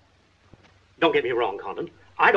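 A man speaks in a clipped, tense voice, close by.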